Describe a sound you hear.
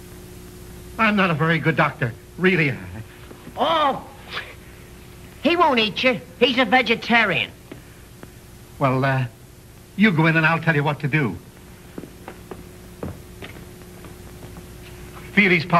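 Men talk with animation, heard through an old, hissy recording.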